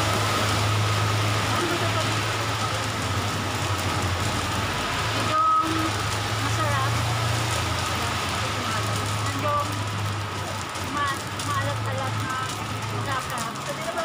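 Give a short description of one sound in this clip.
A woman talks casually up close.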